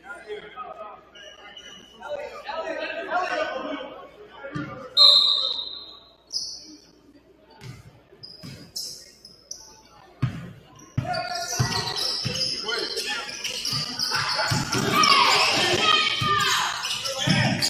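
A crowd in the stands cheers and shouts in a large echoing gym.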